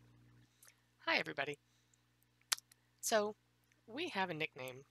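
A middle-aged woman speaks calmly into a headset microphone.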